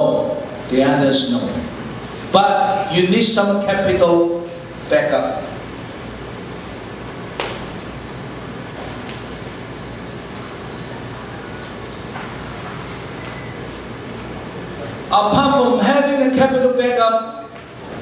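A man speaks with animation through a microphone and loudspeakers in a large room, pausing between phrases.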